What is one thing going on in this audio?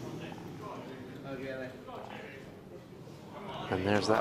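A snooker ball clicks softly against another ball.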